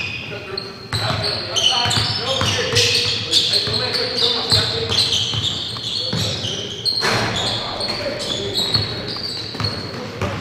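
A basketball bounces on a wooden floor as players dribble.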